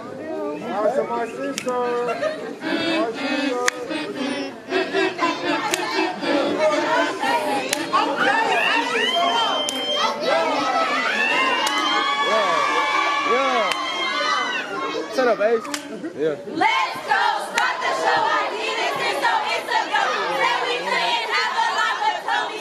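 Hands clap in a sharp rhythm.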